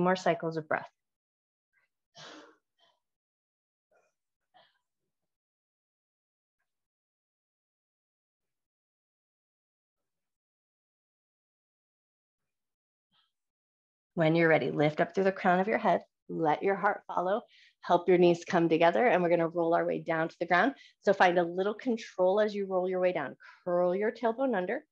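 A woman speaks calmly and clearly through an online call.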